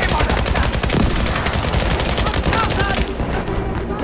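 An anti-aircraft gun booms.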